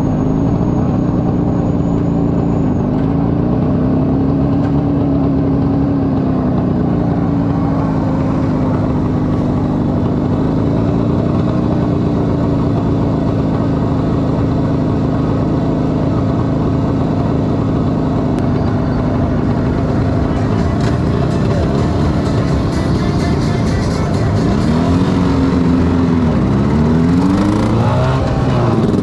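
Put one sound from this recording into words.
A small motorcycle engine putters steadily close by.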